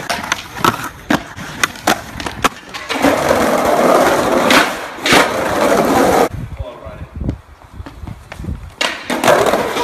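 A skateboard clatters and slaps against concrete.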